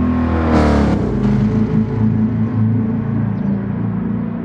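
A car engine drones steadily into the distance, fading away.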